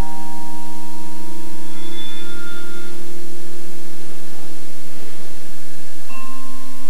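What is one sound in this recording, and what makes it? A marimba plays sustained, rolling notes that ring in a large hall.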